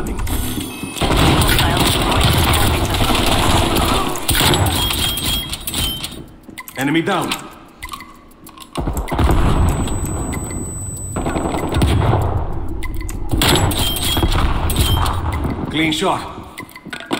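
A rifle fires loud, sharp shots that echo briefly.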